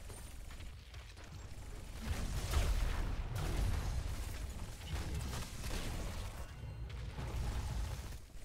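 Game battle effects clash and blast with rapid bursts.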